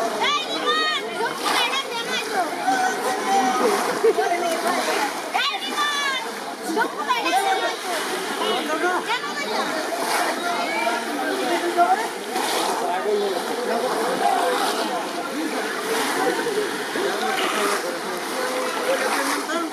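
Water splashes and churns around men wading.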